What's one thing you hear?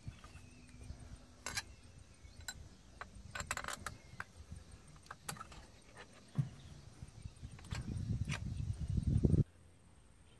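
A metal lever clicks faintly.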